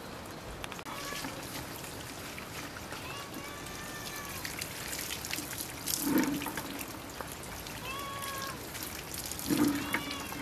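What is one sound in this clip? Water splashes from a tap into a bucket and basin.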